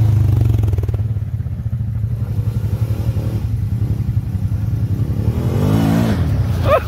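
A second quad bike engine rumbles as it approaches and revs up.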